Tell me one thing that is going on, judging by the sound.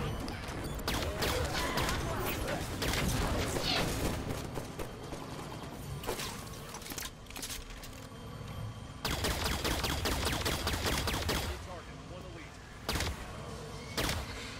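A plasma gun fires in rapid, crackling bursts.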